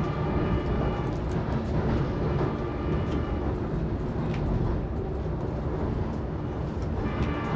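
An engine rumbles steadily.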